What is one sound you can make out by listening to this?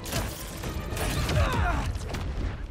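A loud explosion booms and roars.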